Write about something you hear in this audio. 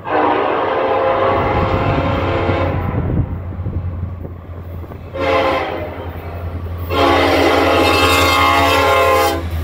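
A diesel locomotive engine rumbles steadily, growing louder.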